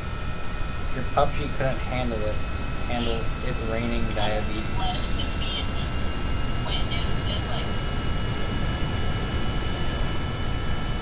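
A jet engine roars steadily as a plane speeds down a runway and takes off.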